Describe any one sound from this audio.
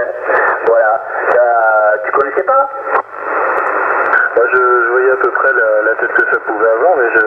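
A radio receiver hisses and crackles with static.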